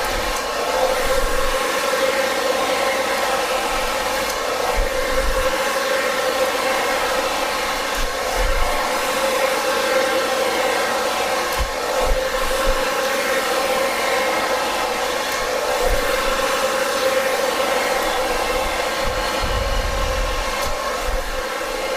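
A hair dryer blows with a steady whirring roar close by.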